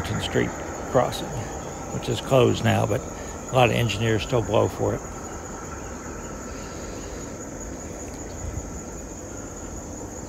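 A small model locomotive rolls quietly along the track.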